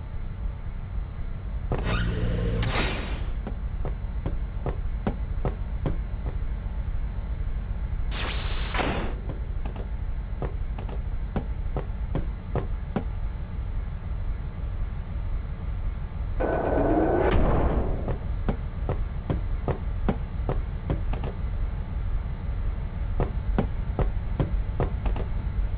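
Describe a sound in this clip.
Footsteps tap quickly on a hard metal floor.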